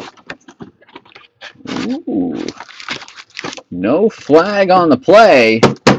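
A cardboard box lid is lifted open with a papery scrape.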